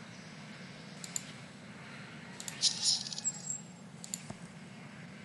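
Short game sound effects chime and click.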